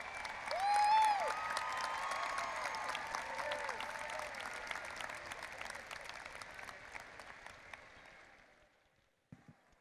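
A crowd cheers and applauds outdoors, then fades.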